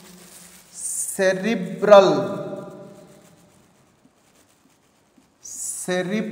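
A man speaks in a calm lecturing voice.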